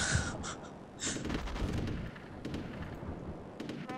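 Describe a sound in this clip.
Rifle shots crackle in a battle.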